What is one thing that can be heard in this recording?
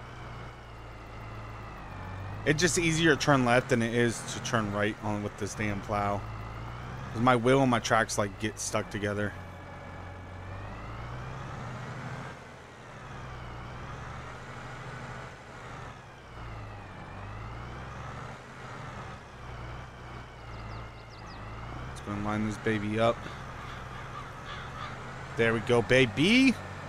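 A tractor engine hums steadily, rising and falling slightly in pitch.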